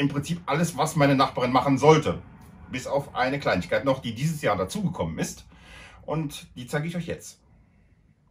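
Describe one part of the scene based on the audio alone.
A man talks calmly and clearly into a microphone, close by.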